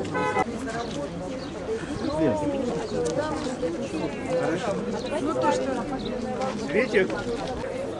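A woman speaks to a group outdoors.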